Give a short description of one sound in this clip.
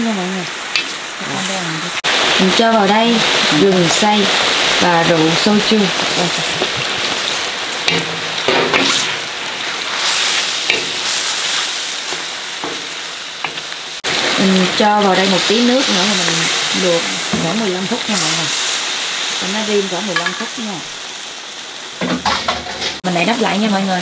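Meat sizzles loudly in a hot pan.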